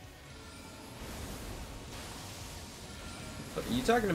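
A magic spell bursts with a shimmering whoosh.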